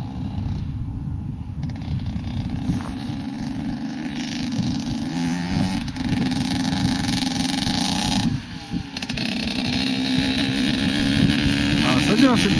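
A motorbike engine buzzes in the distance and grows louder as it draws closer.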